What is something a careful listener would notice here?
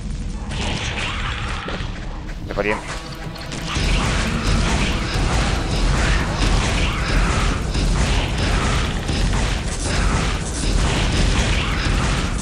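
Monsters snarl and screech.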